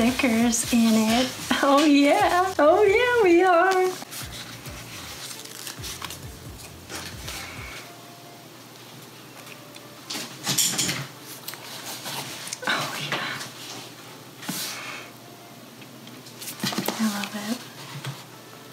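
Paper rustles and crinkles as sheets are handled.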